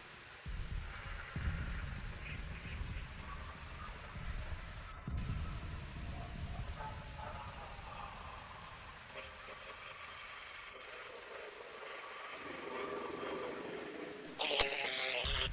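Faint whistling tones from a radio rise and fall between stations.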